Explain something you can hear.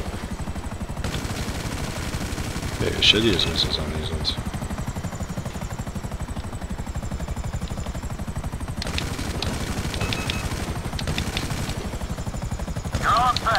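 Helicopter rotor blades thump rapidly and steadily close by.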